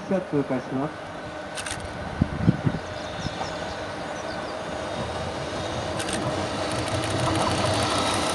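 A train rumbles closer along the tracks, growing steadily louder.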